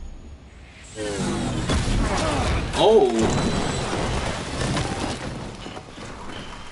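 An explosion booms and debris scatters.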